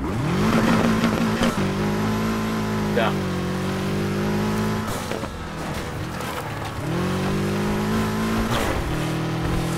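A car's exhaust pops and crackles.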